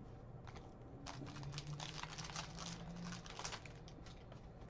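A foil wrapper crinkles and tears.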